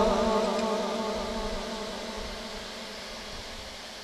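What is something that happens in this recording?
A man chants slowly and melodiously through a microphone.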